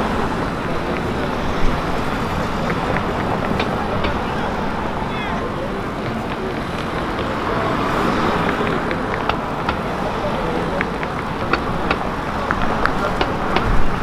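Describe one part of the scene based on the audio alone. Cars drive through a busy city intersection.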